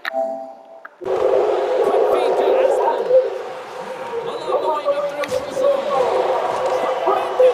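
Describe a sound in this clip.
A large arena crowd roars and cheers.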